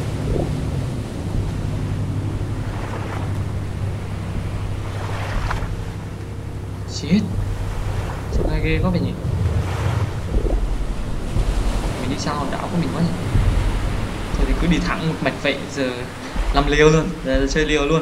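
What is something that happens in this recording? Ocean waves slosh and roll steadily.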